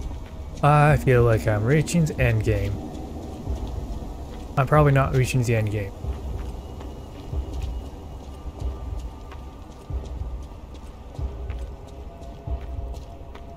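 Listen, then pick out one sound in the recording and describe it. Footsteps run over cobblestones.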